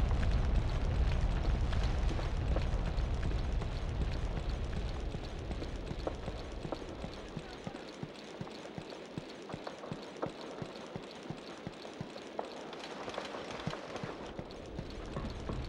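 Boots tread in steady, even footsteps on hard ground.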